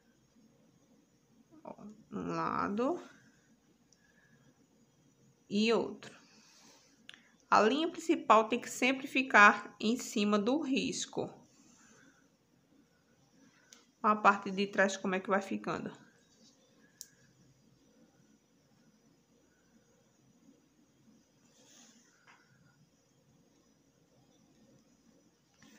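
A needle and thread are pulled softly through cloth.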